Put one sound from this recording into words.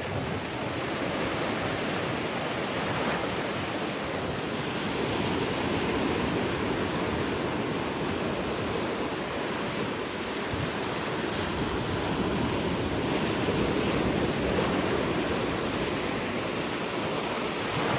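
Waves break and wash onto the shore with a steady rushing roar.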